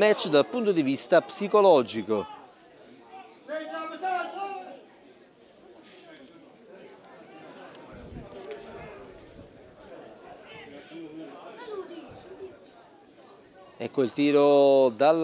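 Nearby spectators shout loudly.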